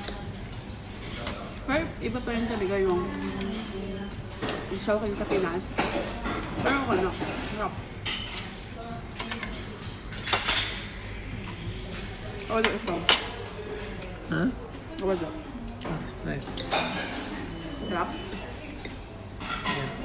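A fork and spoon clink on a plate.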